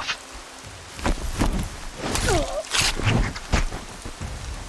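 Heavy blows thud and clang against a metal creature.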